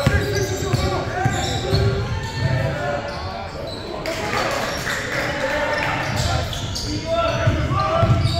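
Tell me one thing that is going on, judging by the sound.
A basketball bounces on a hard floor in an echoing gym.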